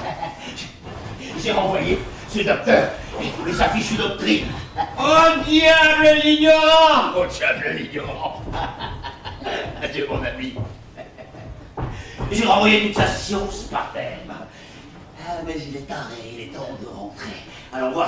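A man speaks loudly and theatrically on a stage.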